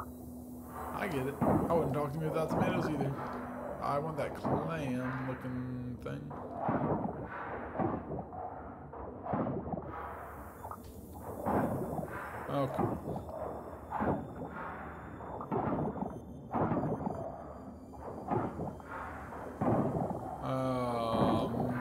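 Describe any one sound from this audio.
A young man talks with animation, close to a microphone.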